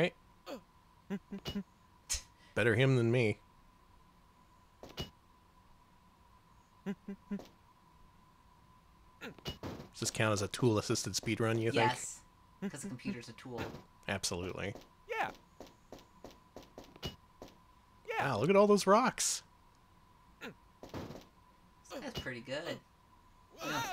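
Retro video game sound effects blip and click.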